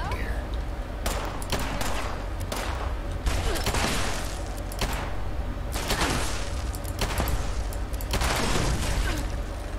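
A rifle fires bursts of shots.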